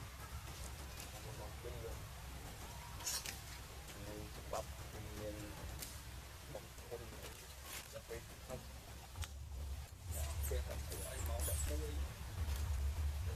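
Monkeys make soft, short squeaking calls close by.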